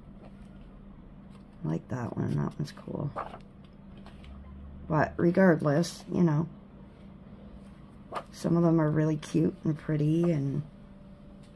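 Paper pages turn with a soft rustle.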